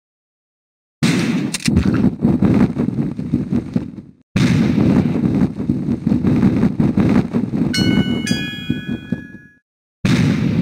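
Loud game gunshots and blasts burst out in quick runs.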